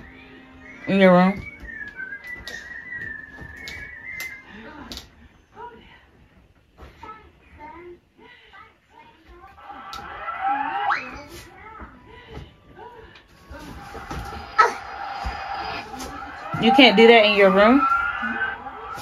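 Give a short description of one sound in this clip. A toddler squeals and babbles close by.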